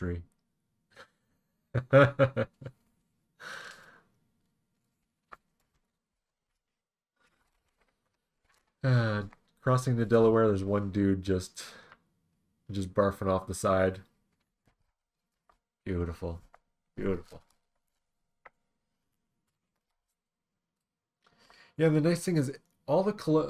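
A man talks calmly and closely into a microphone, in bursts with pauses.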